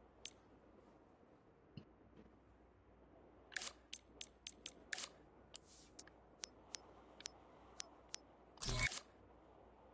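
Short electronic menu clicks tick repeatedly.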